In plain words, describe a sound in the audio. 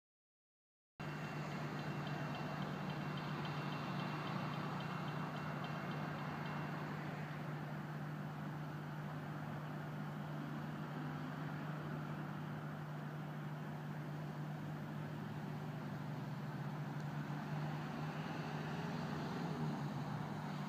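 A diesel railcar rumbles in the distance as it slowly approaches.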